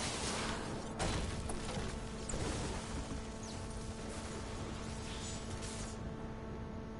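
A pickaxe strikes rock with sharp, heavy thuds.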